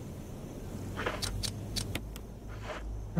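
Short electronic menu clicks beep in quick succession.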